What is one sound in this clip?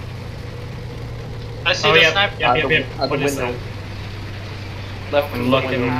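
A tank engine idles with a steady low rumble.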